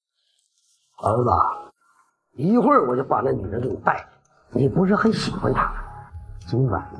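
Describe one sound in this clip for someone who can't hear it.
A middle-aged man speaks.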